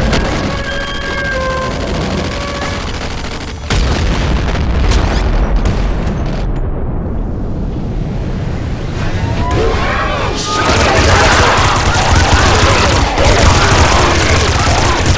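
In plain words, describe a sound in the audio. Gunfire and explosions crackle and boom rapidly.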